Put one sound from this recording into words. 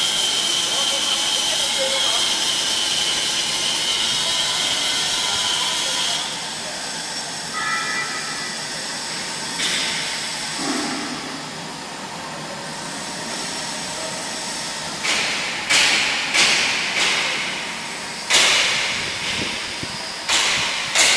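A welding arc crackles and hisses steadily.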